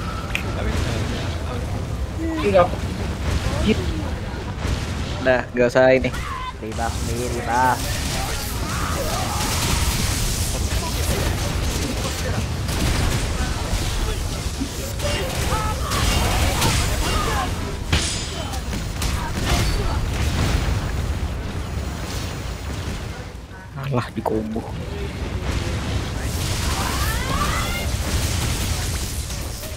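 Blades slash and strike rapidly in a fight.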